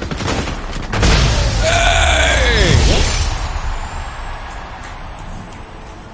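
A bright, triumphant fanfare blares out suddenly.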